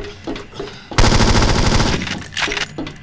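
A rapid burst of automatic gunfire rings out.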